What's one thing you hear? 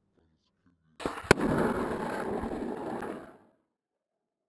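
Skateboard wheels roll and rumble on rough asphalt.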